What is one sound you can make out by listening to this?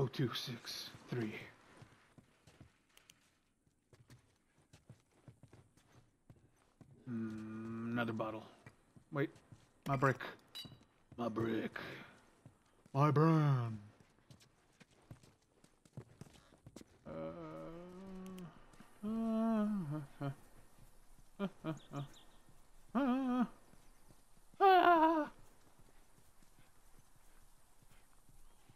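Footsteps tread steadily across a floor and then a path.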